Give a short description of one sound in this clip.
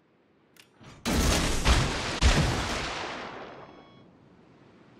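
Big naval guns fire in a loud, booming salvo that rumbles away.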